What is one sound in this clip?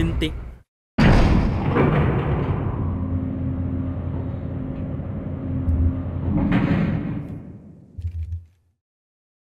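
An elevator rumbles and hums as it moves.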